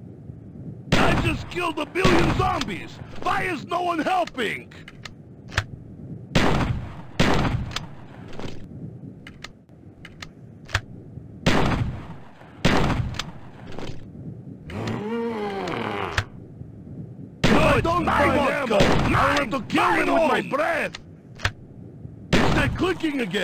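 A shotgun fires loud blasts again and again.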